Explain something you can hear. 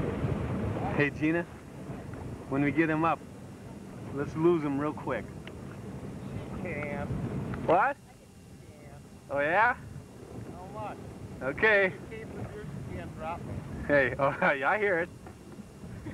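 A young woman calls out and talks loudly from nearby.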